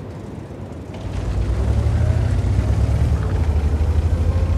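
A heavy tank engine suddenly roars louder and drives off.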